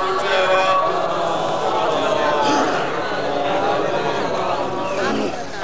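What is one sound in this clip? A middle-aged man sings or recites with feeling into a microphone, heard through loudspeakers.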